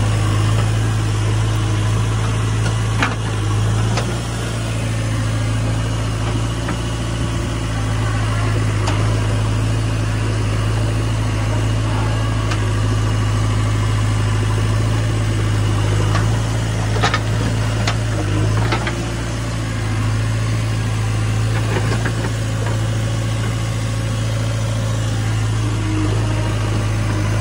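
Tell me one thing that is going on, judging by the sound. A tractor engine idles steadily close by.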